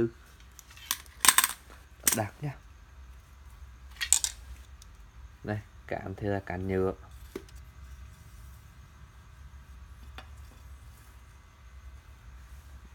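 Fishing rods knock and clatter against each other as they are handled.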